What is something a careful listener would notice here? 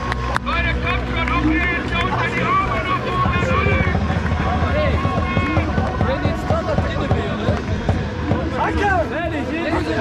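A crowd of men chants and sings loudly outdoors.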